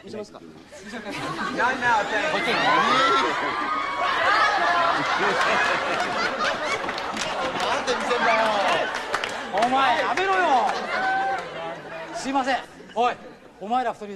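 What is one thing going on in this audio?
A crowd of men laughs loudly.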